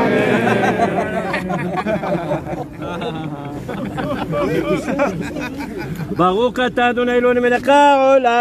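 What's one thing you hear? A group of men sing together close by.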